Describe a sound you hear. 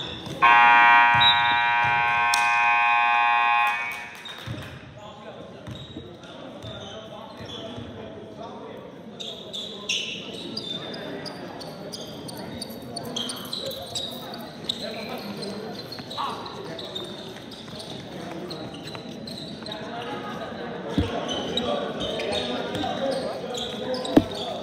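Young people chatter and call out in a large echoing hall.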